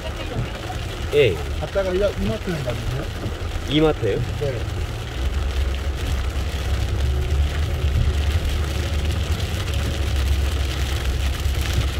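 Rain patters on a car windshield.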